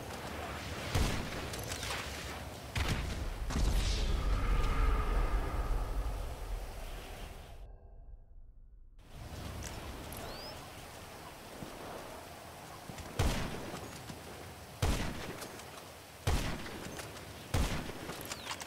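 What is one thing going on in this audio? A rifle fires loud single shots with a short echo.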